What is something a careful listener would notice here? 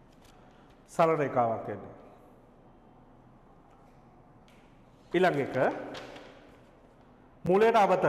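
A man speaks in short bursts, close and clear.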